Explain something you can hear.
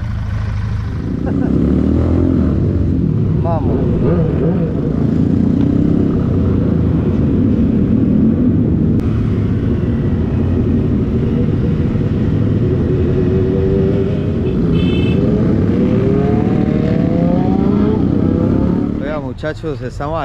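Motorcycle engines roar steadily while riding.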